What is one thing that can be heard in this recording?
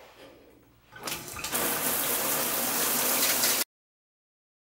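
Water sprays steadily from a shower head.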